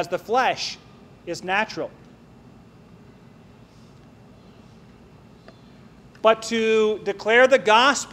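A man speaks with emphasis into a microphone, with long pauses.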